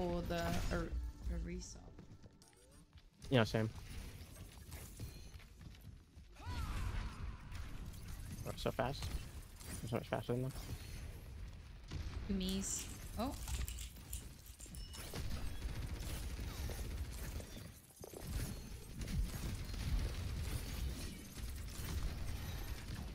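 A young woman talks through a headset microphone.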